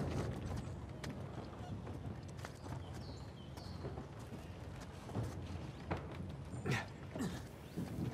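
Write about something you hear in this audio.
Hands grip and scrape on stone as a man climbs.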